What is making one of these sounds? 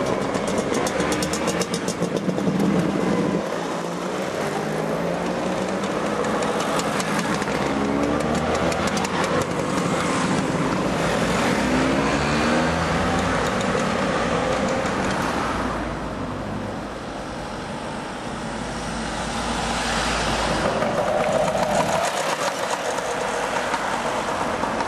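Scooter engines buzz and whine as they ride past.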